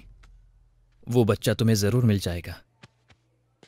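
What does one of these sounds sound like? A man speaks warmly and close by.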